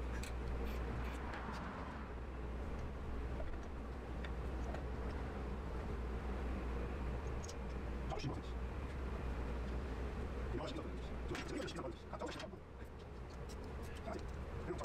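Metal parts clink and click as a brake caliper is fitted onto a disc.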